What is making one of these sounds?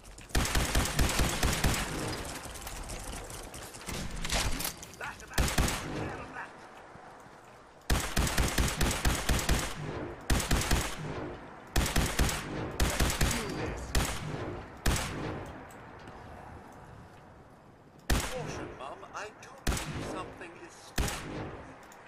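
Rapid gunfire bursts out loudly in repeated volleys.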